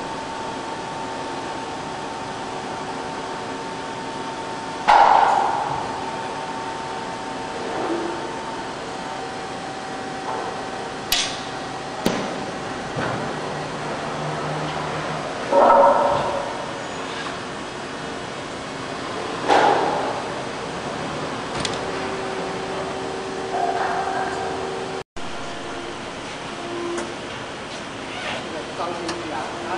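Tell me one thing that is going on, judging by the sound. Machinery hums steadily in a large hall.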